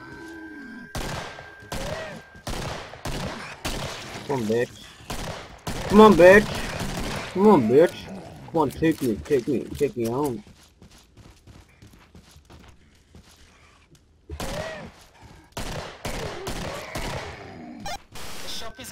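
Handguns fire a series of sharp shots.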